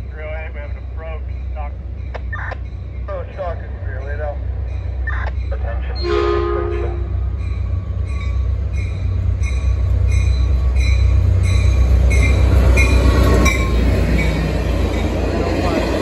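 A diesel locomotive rumbles as a train approaches and passes close by.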